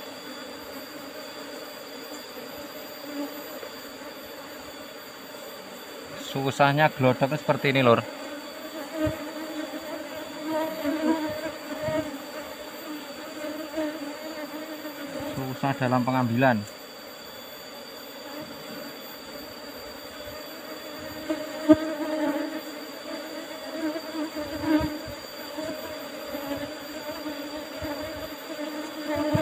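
Bees buzz in a dense, steady hum close by.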